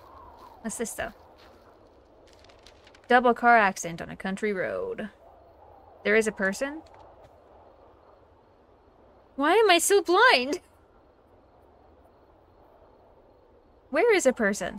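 A young woman talks with animation close to a microphone, in short bursts.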